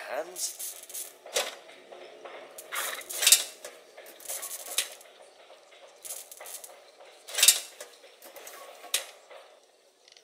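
Metal pliers scrape and clink as small fuses are pulled out of a fuse box.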